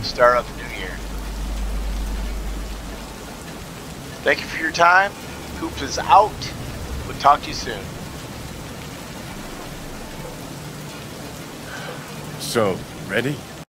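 A man speaks calmly and close by.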